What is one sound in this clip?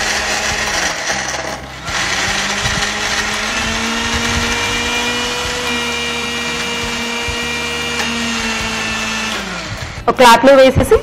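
A mixer grinder whirs loudly with a steady whine.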